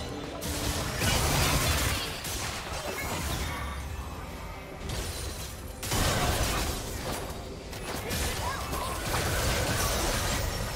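Spell effects crackle and whoosh in a fast game battle.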